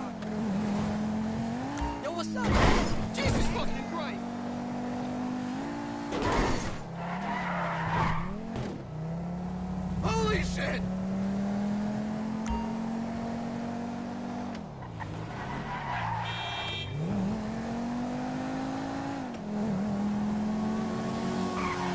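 A car engine hums steadily and rises and falls in pitch as the car speeds up and slows down.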